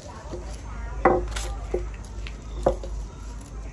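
A rolling pin knocks against a hard counter.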